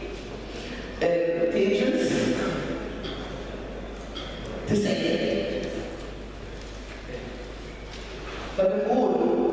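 A man speaks calmly, heard through a microphone in an echoing room.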